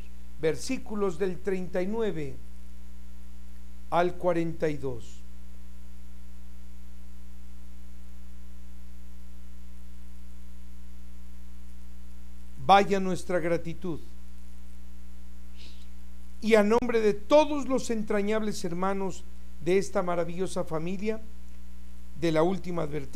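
An older man speaks calmly and steadily into a microphone, pausing now and then.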